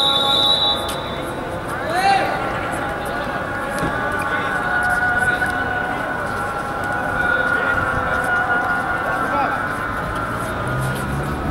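A crowd of young men talks and calls out outdoors.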